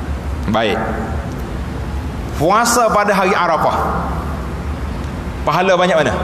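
An elderly man speaks with animation into a microphone, in a large echoing hall.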